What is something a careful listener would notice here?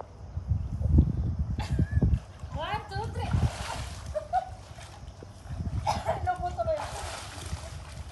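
Women laugh close by.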